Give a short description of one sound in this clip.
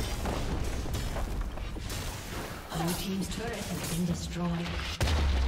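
Spell blasts and weapon hits crackle and thud in a fast fantasy battle.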